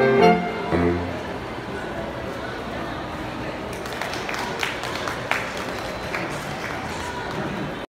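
Voices of a crowd murmur in a large echoing hall.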